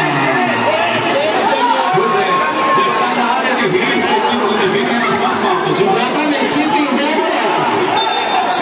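A crowd of spectators shouts and chatters loudly in a large echoing hall.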